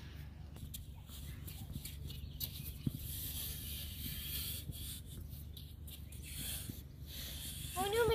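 A stick scrapes through wet sand.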